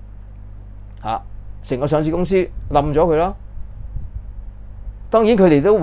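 An older man speaks calmly and close up into a clip-on microphone.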